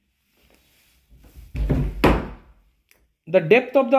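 A cupboard door swings open.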